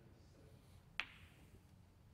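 Snooker balls knock together with a clack.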